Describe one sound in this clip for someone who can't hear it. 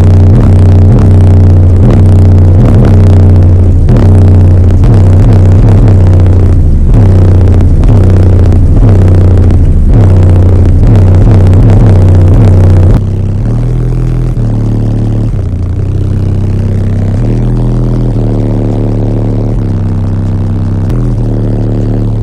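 Loud music with deep, booming bass plays through car speakers in a closed car.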